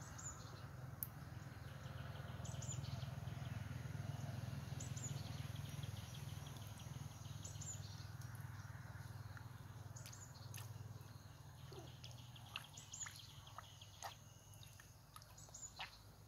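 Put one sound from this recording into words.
Hands splash and dabble in shallow water.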